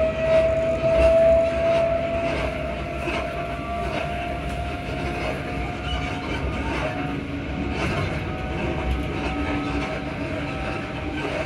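A train rumbles steadily along the track.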